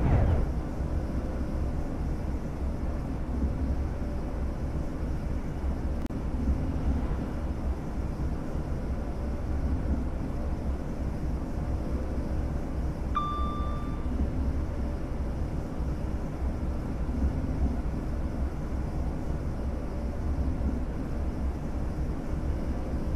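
A train rumbles steadily along the tracks at speed.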